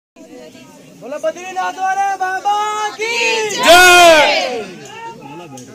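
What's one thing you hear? A group of men chant loudly together in unison.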